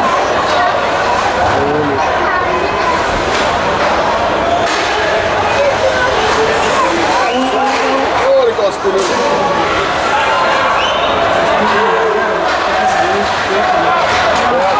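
Skates scrape and hiss on ice.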